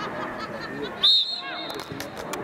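A referee's whistle blows a short blast.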